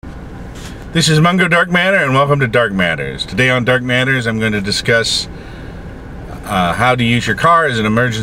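A middle-aged man speaks calmly and close to the microphone.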